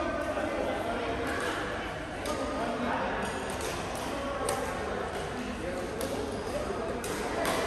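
Shuttlecocks are struck with rackets in sharp, repeated pops.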